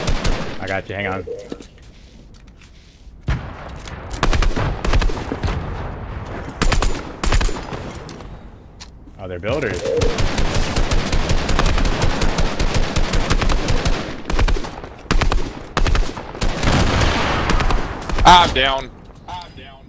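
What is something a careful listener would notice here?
A man talks with animation into a headset microphone.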